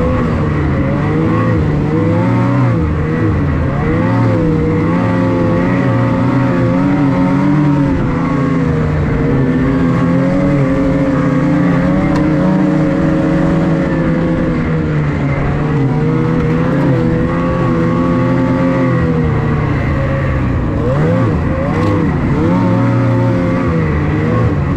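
A snowmobile engine roars steadily up close, its pitch rising and falling with the throttle.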